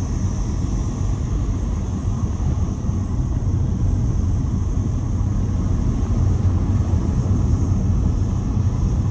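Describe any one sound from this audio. Wind buffets loudly past an open car window.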